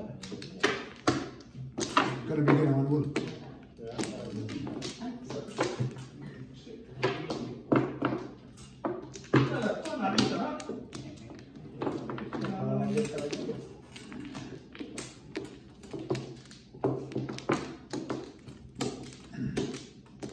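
Plastic game tiles click and clack against each other and a table top.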